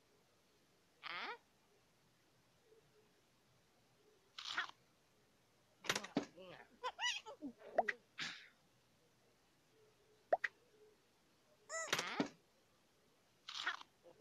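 A cartoon cat munches and gulps food with playful crunching sounds.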